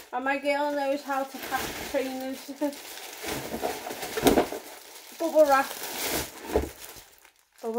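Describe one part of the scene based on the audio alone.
Plastic bubble wrap crinkles and rustles.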